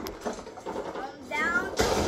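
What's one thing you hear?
A young boy laughs and talks excitedly close by.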